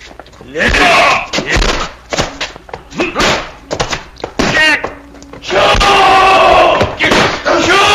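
A man shouts and grunts loudly nearby.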